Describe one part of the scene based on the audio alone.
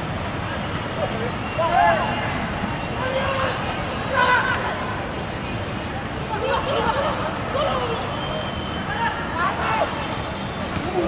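Players shout to each other across an open outdoor pitch.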